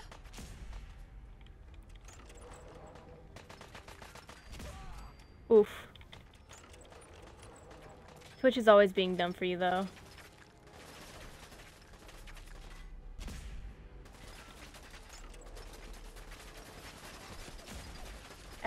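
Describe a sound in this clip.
Heavy gunfire bursts out in rapid shots.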